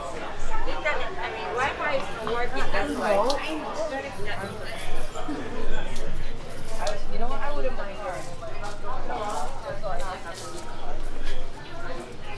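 A crowd of adults talks and chatters nearby outdoors.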